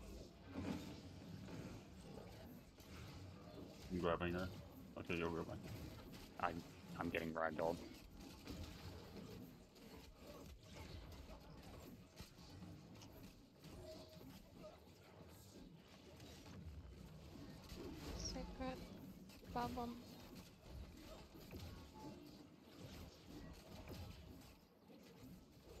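Magic spells blast and crackle in a fierce fight.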